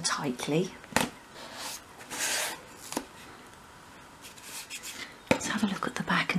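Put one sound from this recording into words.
A small wooden cabinet knocks lightly against a hard surface.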